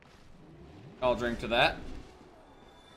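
A young man speaks briefly close to a microphone.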